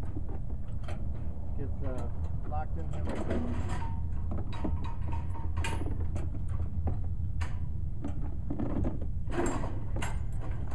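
A metal chain clinks against a steel frame.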